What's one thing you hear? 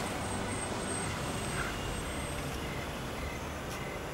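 A car engine hums as a car pulls up.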